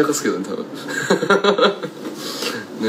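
A young man laughs softly.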